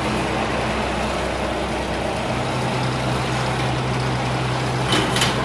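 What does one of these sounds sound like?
A wire machine hums and rattles steadily.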